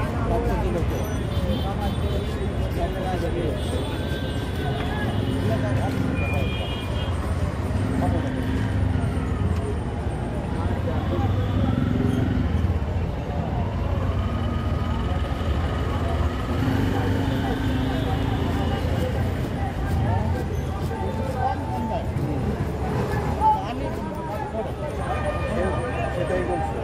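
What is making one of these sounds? A knife chops and scrapes against a metal plate.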